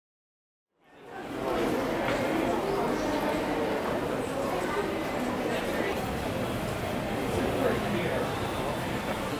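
A crowd of people murmurs and chatters all around.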